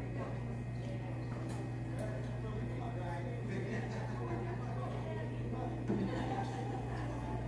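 A small string band plays a lively tune through loudspeakers in a large hall.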